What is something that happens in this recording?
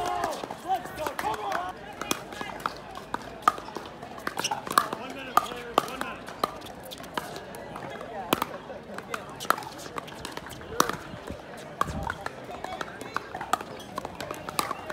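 Players' shoes scuff and squeak on a hard court.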